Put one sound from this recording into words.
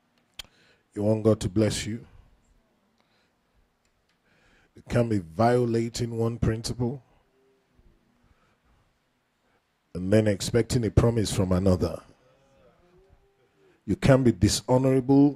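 A man preaches with animation through a microphone, in bursts with pauses.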